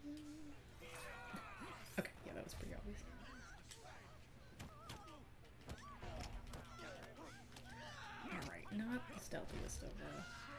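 Punches land with sharp thuds in a brawl.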